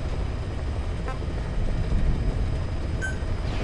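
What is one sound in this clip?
A short electronic beep chimes.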